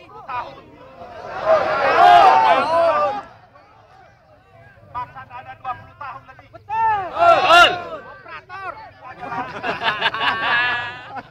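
A large crowd shouts together in loud bursts.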